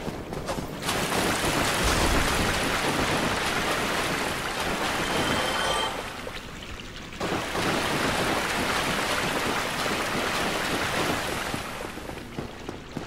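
Water rushes loudly through an echoing tunnel.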